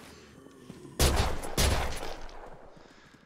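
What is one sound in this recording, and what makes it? Gunshots ring out twice.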